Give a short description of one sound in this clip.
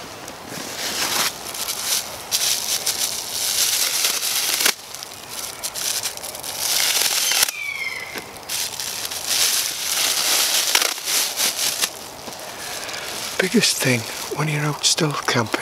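A plastic bag rustles and crinkles in a man's hands.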